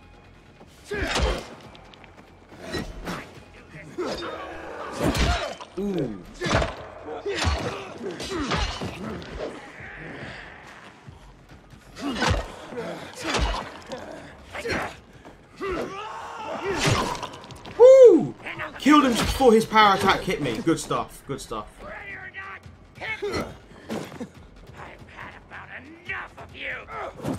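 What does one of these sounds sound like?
Axe blows thud heavily into flesh, over and over.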